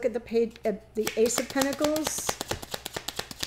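Cards shuffle with quick, soft flicks.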